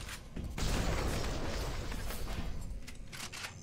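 A shotgun fires loud booming blasts.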